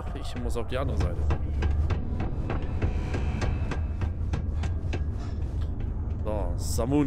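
Footsteps run across a metal floor.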